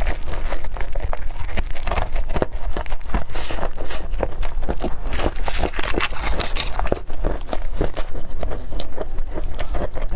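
A young woman chews and smacks her lips close to a microphone.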